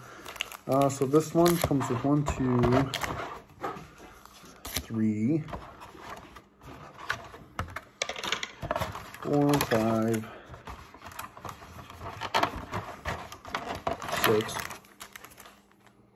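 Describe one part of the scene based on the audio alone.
Plastic trading card packs crinkle and rustle in a man's hands.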